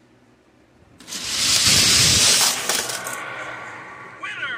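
A toy car rolls fast down a plastic track.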